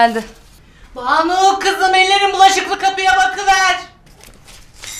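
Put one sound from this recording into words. An older woman calls out loudly in a long, drawn-out voice.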